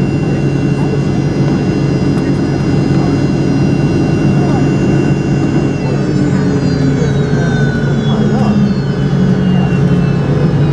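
Aircraft wheels rumble along a runway.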